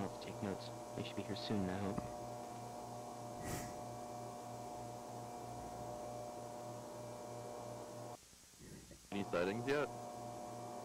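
A man speaks in short bursts, heard through a microphone.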